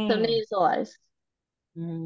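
A woman speaks briefly into a microphone, close by.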